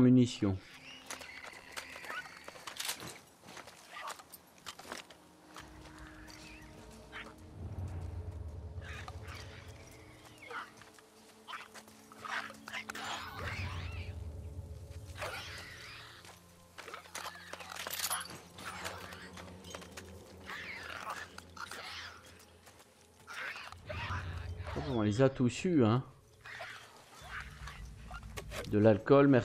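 Soft footsteps creep over grass and gravel.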